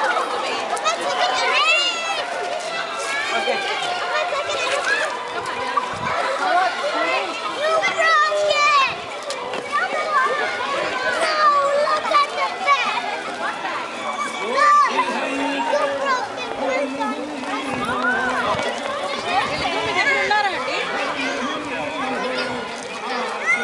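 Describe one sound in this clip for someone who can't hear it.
A crowd of children and adults chatter and call out nearby, outdoors.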